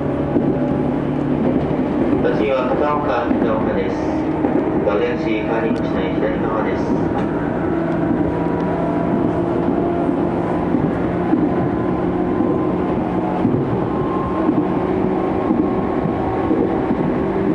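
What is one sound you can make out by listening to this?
An electric commuter train's traction motors whine from inside the carriage as it runs at speed.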